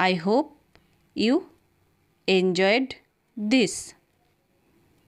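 A woman speaks cheerfully and close up into a microphone.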